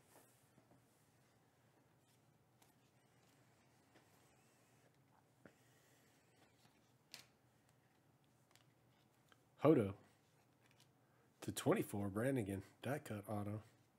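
Trading cards slide and flick against one another in a stack.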